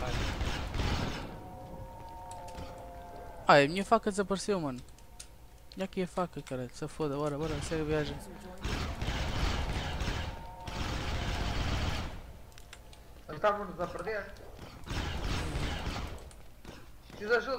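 A laser gun fires in rapid bursts.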